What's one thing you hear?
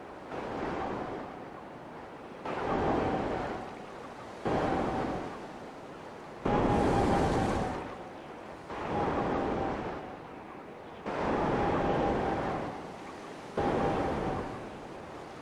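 A swimmer splashes through open sea water in repeated strokes.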